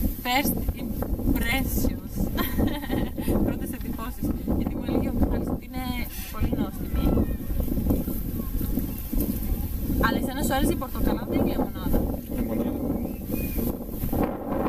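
A young woman talks to the microphone up close with animation.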